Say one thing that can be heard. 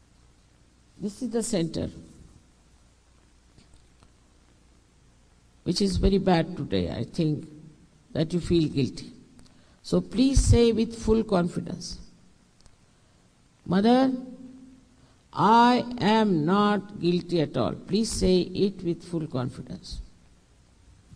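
An elderly woman speaks calmly into a microphone, with pauses.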